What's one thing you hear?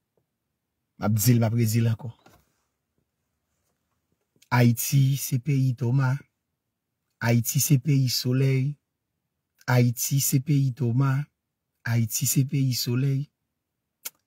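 A man speaks calmly and close to the microphone, in short bursts with pauses.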